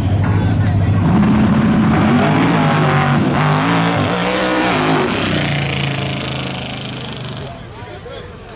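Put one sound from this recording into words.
A race car engine roars at full throttle as the car launches and speeds away into the distance.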